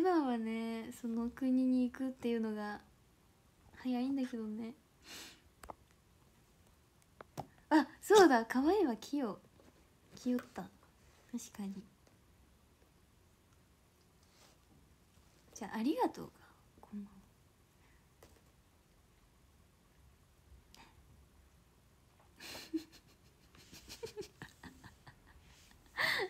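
A young woman speaks softly and tearfully close to a microphone, in short bursts with pauses.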